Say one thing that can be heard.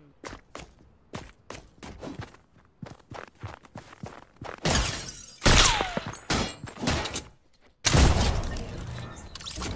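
Gunshots ring out in a video game.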